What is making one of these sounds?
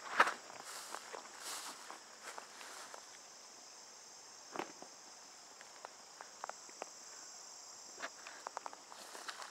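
A shallow stream ripples and trickles gently outdoors.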